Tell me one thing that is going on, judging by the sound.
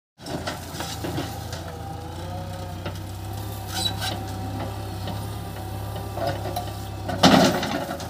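Hydraulics whine as a backhoe arm swings.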